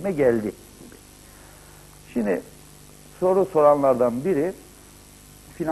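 A middle-aged man speaks calmly in short bursts into a microphone.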